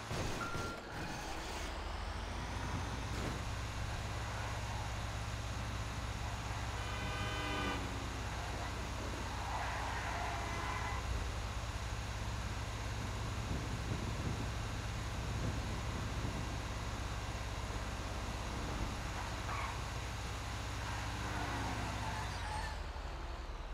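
A heavy truck engine rumbles steadily as the truck drives along a road.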